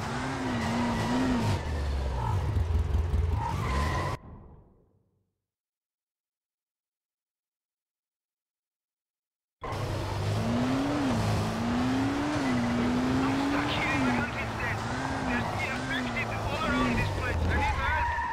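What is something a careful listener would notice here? An off-road buggy engine rumbles and revs while driving.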